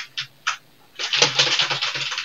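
Punches thump rapidly in a scuffle.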